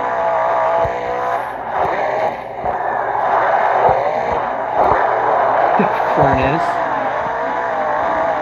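A monster truck engine revs and roars steadily.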